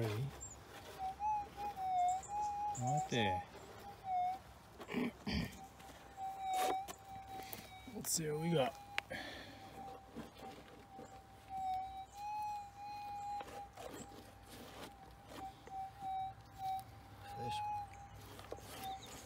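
A metal detector beeps with a steady, wavering tone.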